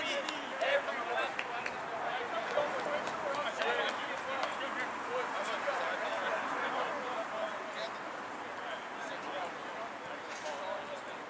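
A crowd of young men shout and call out across an open field at a distance.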